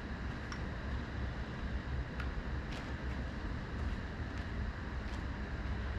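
Faint footsteps shuffle across a hard floor in a large room.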